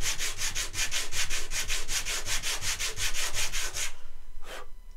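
Wood is rubbed back and forth on sandpaper in quick, rhythmic strokes.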